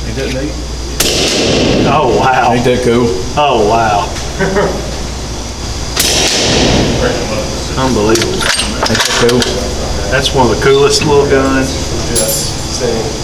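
A suppressed rifle fires a few muffled shots that ring out briefly.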